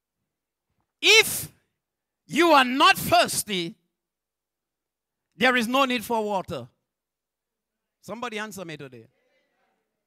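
A man preaches with animation through a microphone and loudspeakers, in short bursts with pauses.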